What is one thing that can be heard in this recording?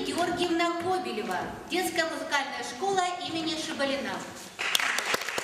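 A woman announces clearly in a large echoing hall.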